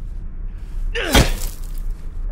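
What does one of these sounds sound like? A crowbar strikes a window.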